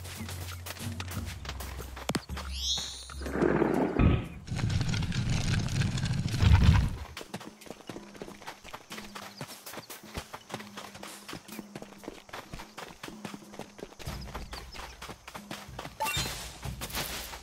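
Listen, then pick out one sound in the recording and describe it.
Light footsteps patter quickly on rocky ground.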